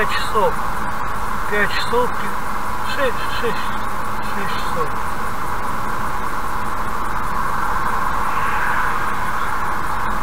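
Tyres roar steadily on a highway as a car drives along.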